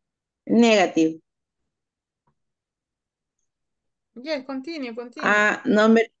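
A woman speaks clearly through an online call.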